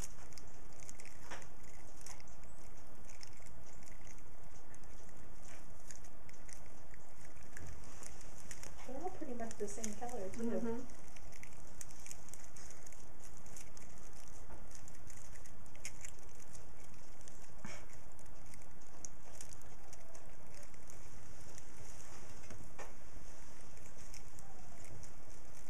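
Puppies chew on a foil tinsel garland, making it crinkle and rustle.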